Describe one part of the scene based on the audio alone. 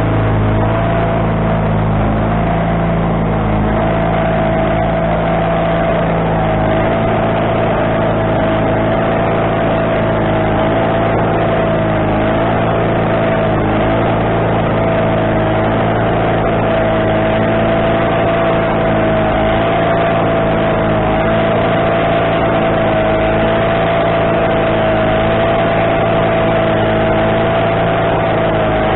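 A band saw blade whines as it cuts through a log.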